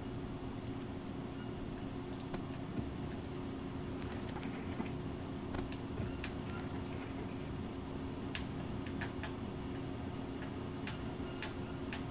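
Soft game menu clicks tick now and then.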